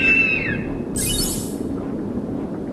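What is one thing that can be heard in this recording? A sparkling magical whoosh bursts out.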